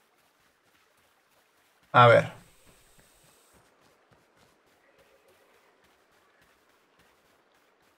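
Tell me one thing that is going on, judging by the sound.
Footsteps patter softly on grass and wooden boards.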